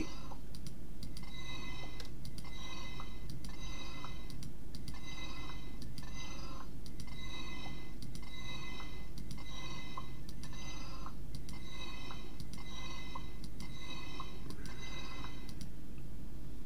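Stone blocks thud and crumble in a quick, regular rhythm.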